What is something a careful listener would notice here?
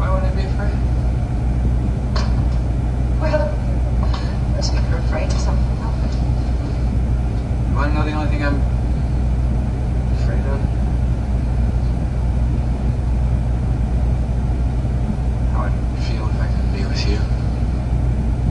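A man speaks calmly, heard through a loudspeaker in a room.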